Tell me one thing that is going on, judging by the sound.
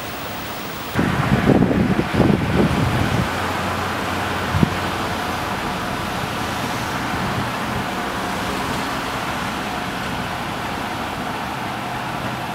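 Traffic hums on a nearby street.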